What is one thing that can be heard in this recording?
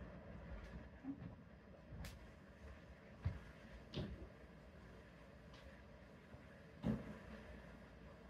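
Footsteps thud on a hard floor in a small room.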